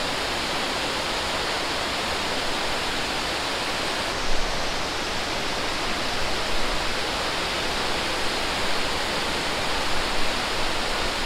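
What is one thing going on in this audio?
A waterfall roars steadily, close by.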